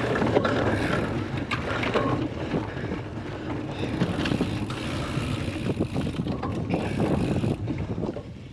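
A bicycle chain and frame rattle over rough ground.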